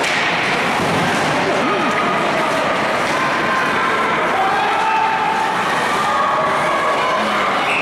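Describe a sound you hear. Ice skates scrape and glide on ice.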